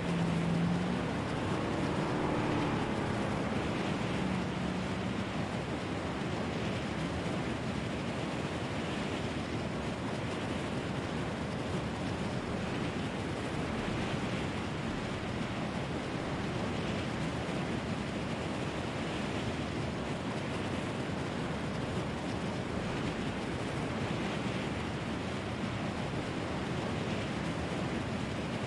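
Wind rushes loudly and steadily past during a fast, low glide.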